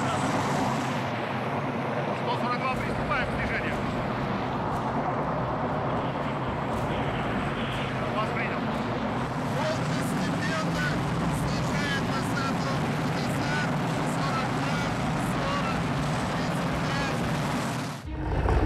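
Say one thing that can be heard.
A helicopter's rotor thuds loudly nearby.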